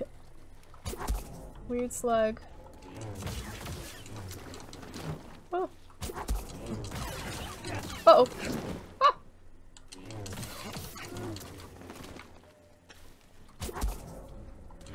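Sharp impacts land in a fight.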